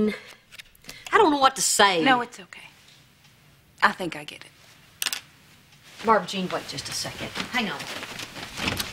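An older woman answers calmly, close by.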